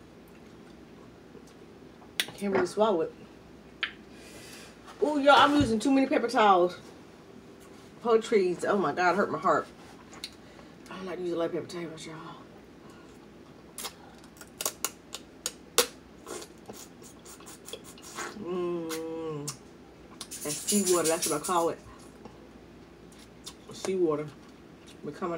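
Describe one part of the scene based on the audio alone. A young woman chews and smacks her lips loudly.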